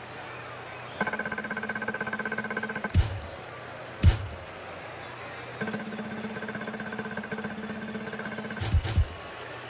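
A game's point counter ticks rapidly as a score tallies up.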